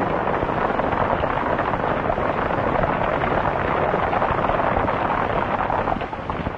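Many horses' hooves pound rapidly on dry ground.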